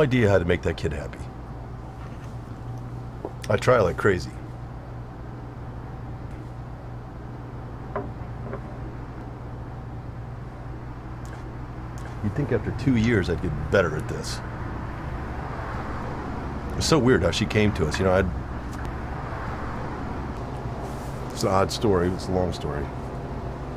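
An older man speaks calmly in short phrases, close by.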